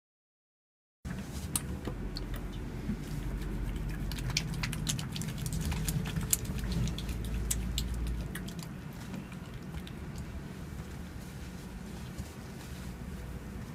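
Hands rub and slide over bare skin with soft swishing.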